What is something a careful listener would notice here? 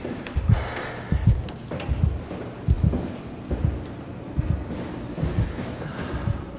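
Heavy footsteps thud on a metal floor.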